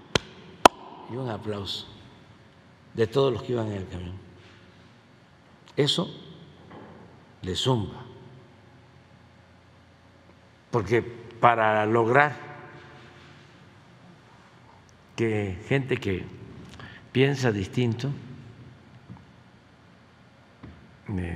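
An elderly man speaks calmly through a microphone, with long pauses.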